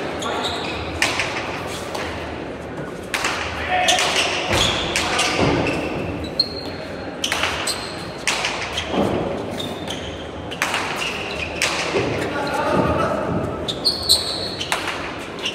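Players' shoes squeak on the hard floor.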